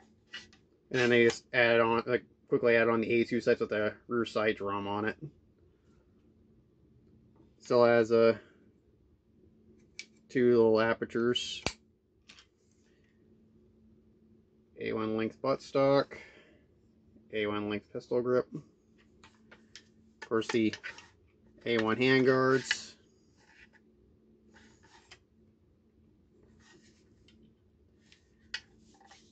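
A rifle's parts click and rattle in a man's hands.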